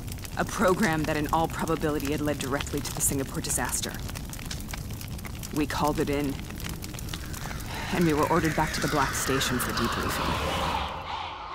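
A woman speaks in a low, tense voice close by.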